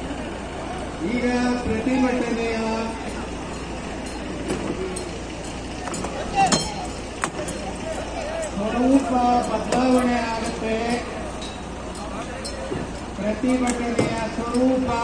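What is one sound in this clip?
A crowd of men chants slogans loudly outdoors.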